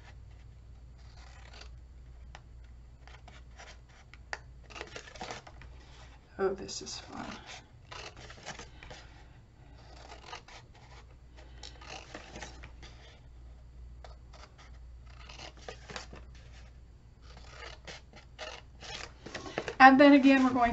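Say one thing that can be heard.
Scissors snip through thin card in short cuts.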